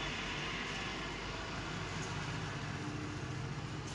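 A razor scrapes softly through short hair.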